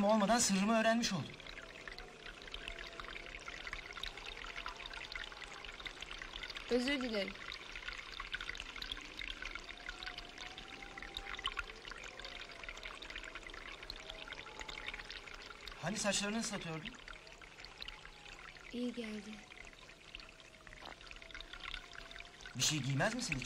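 Water pours and splashes steadily.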